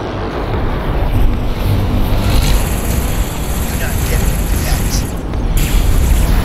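Laser cannons fire in rapid bursts.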